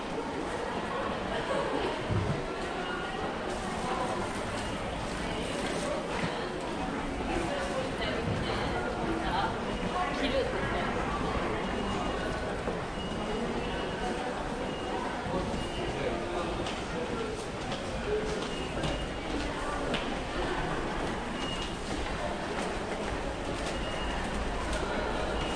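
A crowd murmurs faintly in the background.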